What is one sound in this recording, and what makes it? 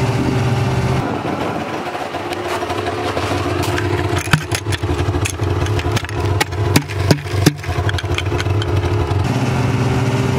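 A snowmobile engine idles quietly nearby.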